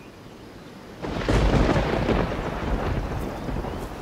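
Wind gusts loudly through trees.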